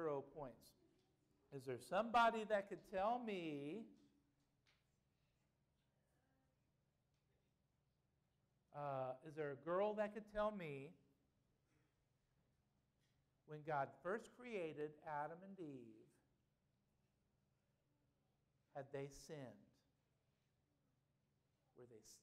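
A man speaks to an audience through a microphone, in bursts with pauses.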